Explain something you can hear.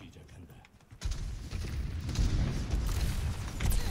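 Gunfire and game effects crackle loudly.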